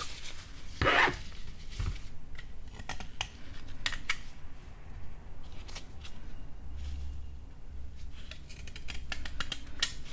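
A metal blade scrapes and shaves soft chalky stone in short strokes.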